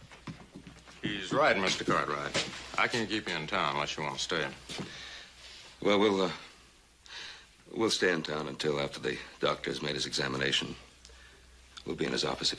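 A man talks calmly at close range.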